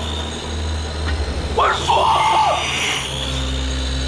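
A man groans and cries out in pain close by.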